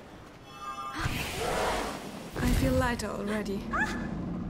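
A flare whooshes upward and fizzes.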